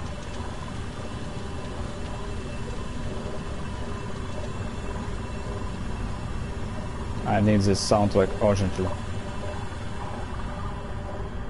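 A jet of steam hisses loudly nearby.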